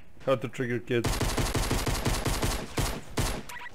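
A pistol fires a rapid string of shots.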